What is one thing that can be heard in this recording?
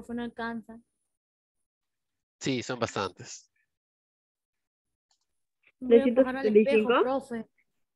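A child speaks in short bursts, heard through an online call.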